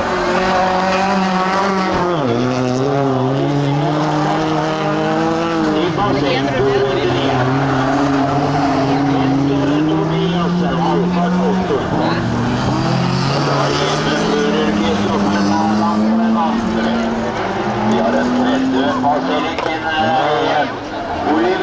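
A race car engine roars loudly, revving up and down.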